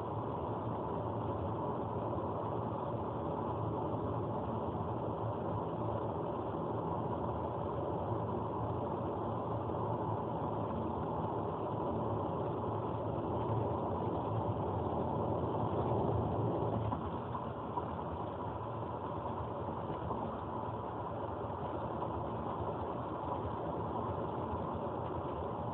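A car's engine hums steadily as tyres roll on a highway.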